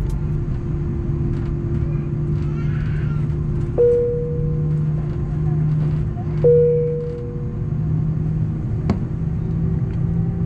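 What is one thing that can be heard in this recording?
Jet engines hum with a steady low drone.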